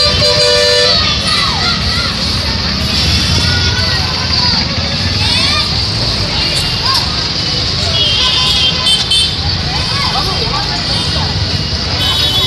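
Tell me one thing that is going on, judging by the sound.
Vehicle horns honk now and then.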